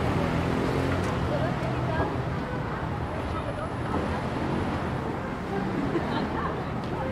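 A tram hums as it idles at a stop.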